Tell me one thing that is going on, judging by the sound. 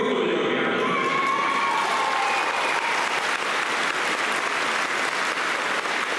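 A large crowd claps and applauds loudly in an echoing hall.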